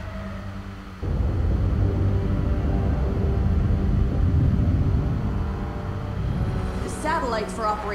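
A large spaceship rumbles deeply as it drifts past.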